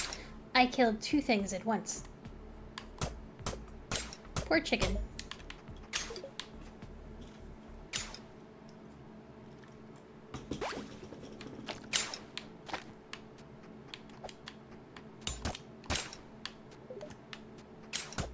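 A video game plays short popping and clicking sound effects.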